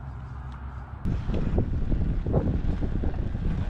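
Bicycle tyres roll over rough tarmac.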